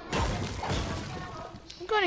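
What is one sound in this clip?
A pickaxe swings and strikes.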